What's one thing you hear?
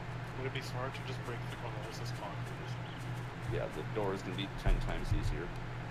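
Footsteps rustle through tall dry grass.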